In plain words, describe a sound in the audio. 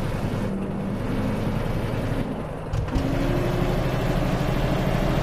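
A truck engine drones steadily, dipping briefly during a gear change before rising again.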